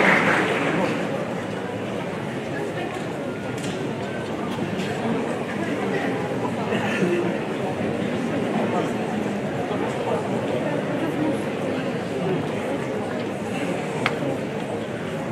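A crowd of students murmurs and chatters.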